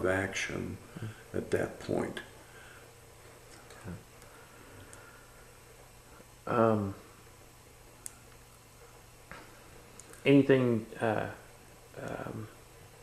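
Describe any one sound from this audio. An elderly man speaks calmly and slowly, close by, with long pauses.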